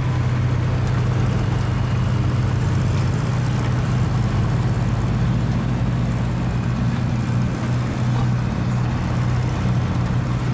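Wind blows across an open field.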